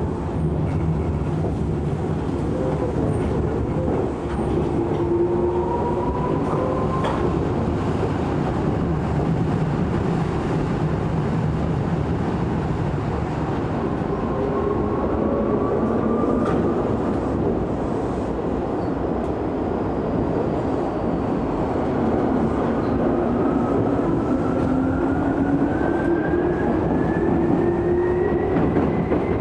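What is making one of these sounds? Chopper-controlled traction motors on an electric train whine, gliding up in pitch as the train speeds up.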